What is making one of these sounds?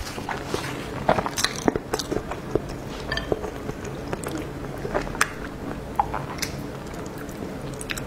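Chopsticks click against a metal bowl.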